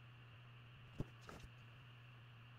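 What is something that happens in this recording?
A hand rustles and flicks a paper page.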